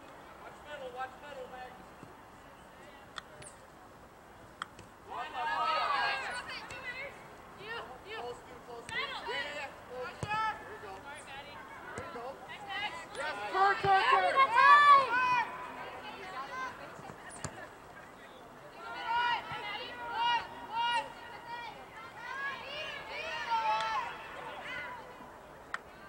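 Spectators on the sidelines shout and cheer loudly outdoors.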